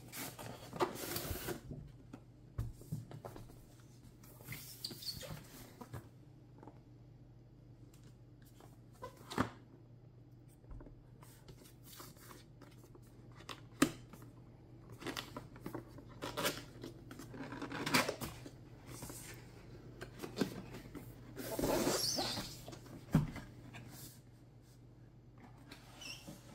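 Cardboard rubs and scrapes as hands slide a box across a surface.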